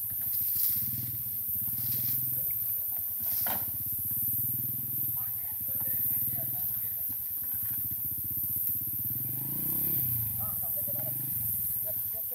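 Water sloshes and splashes as a man wades through a shallow stream.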